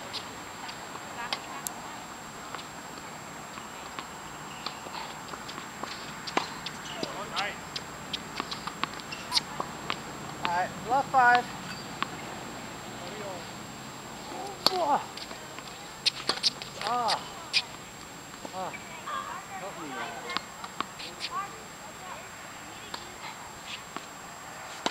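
Tennis balls pop off rackets outdoors.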